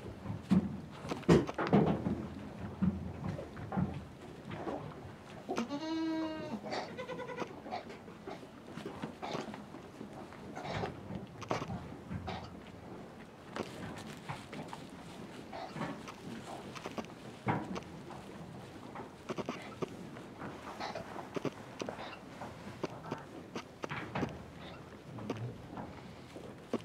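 Hooves shuffle and rustle through straw.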